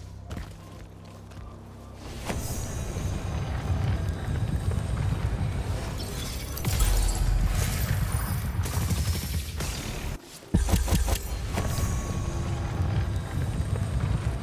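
Magic crackles and hums with a shimmering sound.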